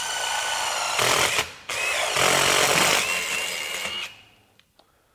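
A drill bit grinds and screeches through steel.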